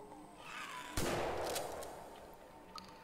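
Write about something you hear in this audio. A gunshot bangs with a short echo.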